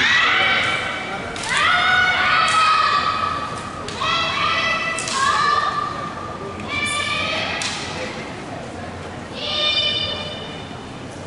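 Young women shout sharp, drawn-out cries together in a large echoing hall.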